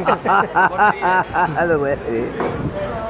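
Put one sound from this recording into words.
A middle-aged man laughs loudly nearby.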